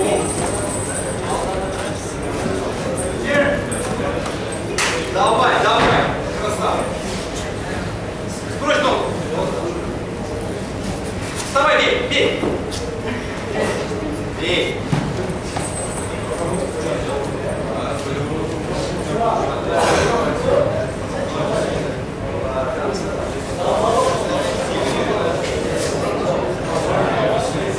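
A crowd shouts and cheers loudly in an echoing room.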